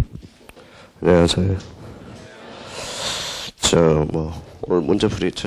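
A man speaks calmly and close through a microphone.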